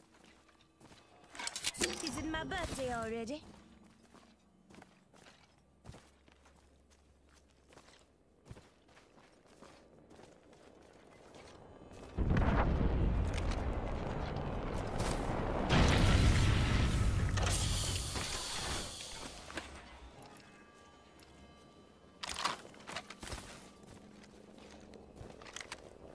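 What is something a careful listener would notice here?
Footsteps pad quickly over grass.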